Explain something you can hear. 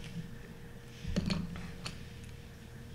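Colored pencils clatter as a hand sorts through them.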